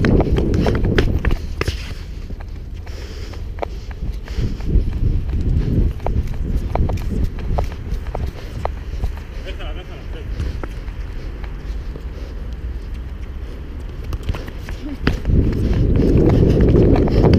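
Running footsteps slap on a hard court.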